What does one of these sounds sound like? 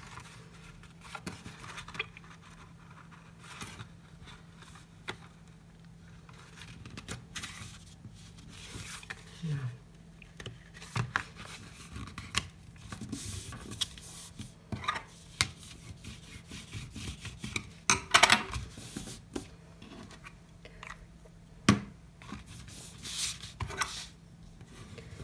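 Stiff paper rustles and crinkles as it is folded by hand.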